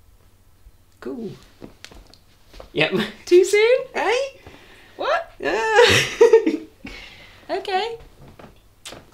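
A young man talks playfully close by.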